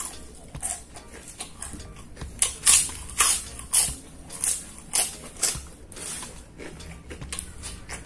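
Fingers rustle and squelch through rice on paper.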